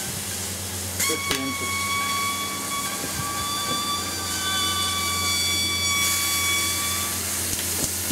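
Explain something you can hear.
A battery hisses with a high whistle as it vents.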